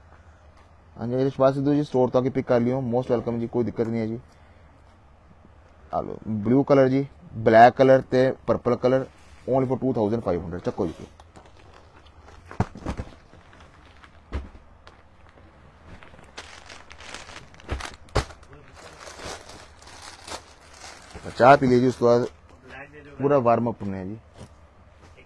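A man talks close by with animation.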